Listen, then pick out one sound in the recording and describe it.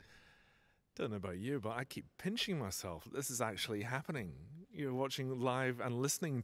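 A man speaks warmly and with animation into a microphone.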